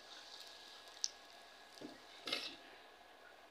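A metal utensil scrapes and taps against a pan.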